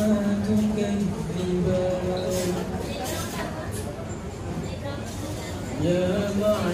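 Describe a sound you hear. A young man chants melodically into a microphone, with long held notes.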